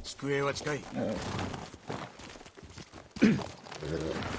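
Horse hooves thud slowly on soft ground.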